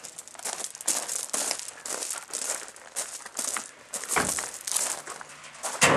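A metal barrel rolls and scrapes over gravel.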